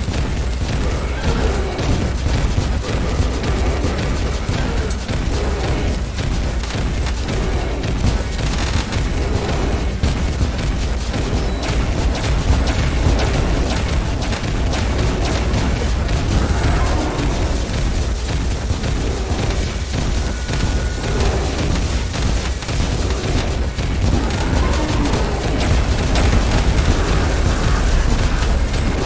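Loud game music plays with driving bass.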